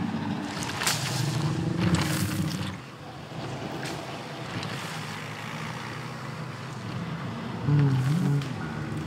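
A large animal lets out a deep, rumbling bellow.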